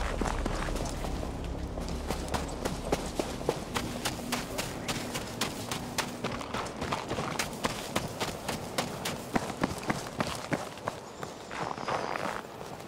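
Footsteps crunch through snow at a steady pace.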